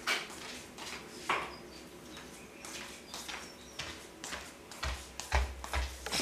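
A woman's slippers shuffle and tap across a hard floor.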